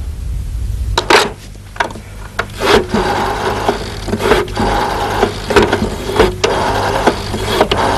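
A rotary telephone dial whirs and clicks as a number is dialled.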